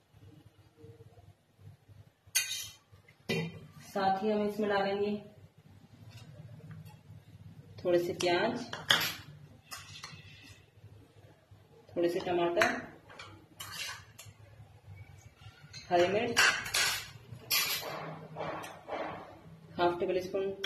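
A spoon clinks against a metal bowl.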